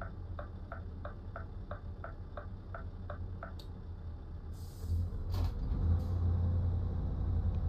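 A truck engine rumbles low and steadily, growing louder toward the end.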